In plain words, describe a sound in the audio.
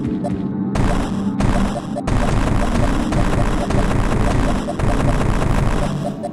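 Short laser-like blasts from a game character's weapon fire now and then.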